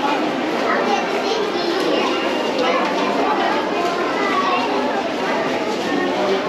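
A crowd of people chatter in a busy indoor hall that echoes.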